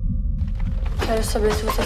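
A young woman speaks briefly with animation.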